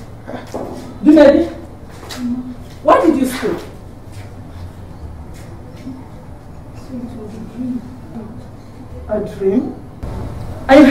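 An elderly woman speaks nearby.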